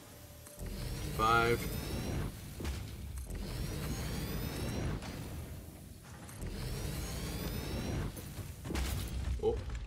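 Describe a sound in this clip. A tool buzzes and crackles steadily.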